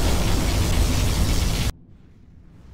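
A beam of energy crackles and hums.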